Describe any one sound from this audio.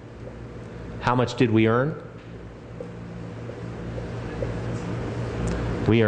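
A middle-aged man speaks calmly and clearly.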